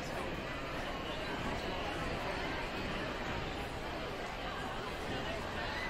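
A crowd chatters steadily in a large echoing gym.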